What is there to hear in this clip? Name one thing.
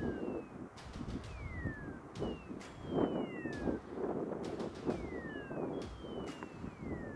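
Wind blows across open grassland.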